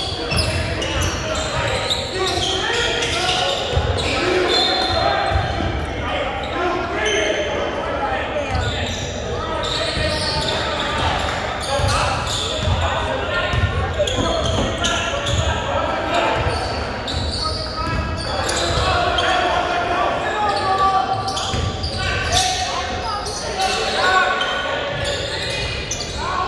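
Spectators talk and cheer in the stands.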